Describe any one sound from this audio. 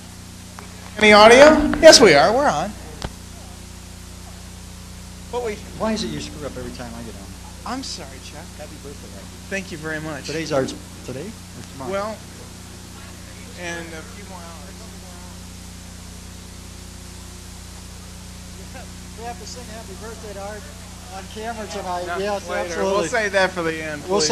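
A young man speaks into a microphone in an interviewing tone.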